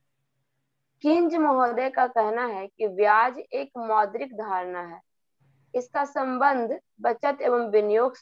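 A young woman speaks steadily over an online call.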